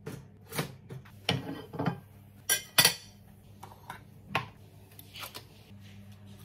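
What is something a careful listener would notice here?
Utensils clink and knock against a plate and a jar.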